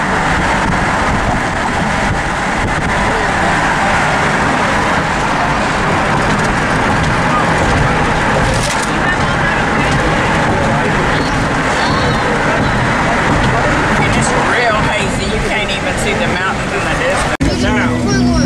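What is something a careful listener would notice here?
Wind rushes past a moving car.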